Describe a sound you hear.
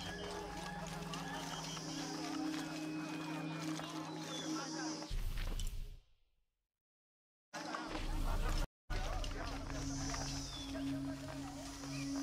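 Footsteps patter quickly on stone and dirt.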